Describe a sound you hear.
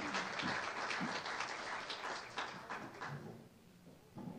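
A crowd of adults chatters in a large room.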